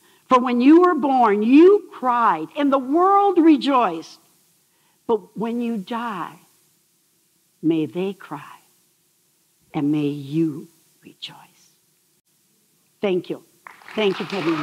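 An elderly woman speaks with animation through a microphone in a large hall.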